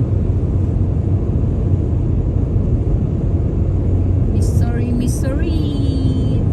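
A car's engine and tyres rumble steadily on a highway.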